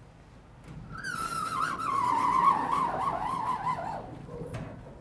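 A sliding chalkboard panel screeches as it moves.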